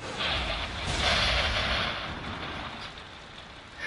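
A magical energy effect whooshes loudly.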